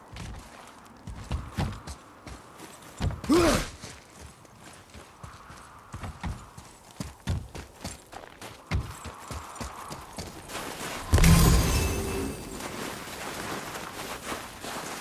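Heavy footsteps crunch through snow and over wooden boards.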